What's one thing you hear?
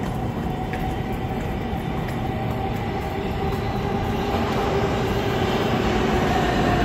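A subway train rumbles closer through a tunnel, growing louder.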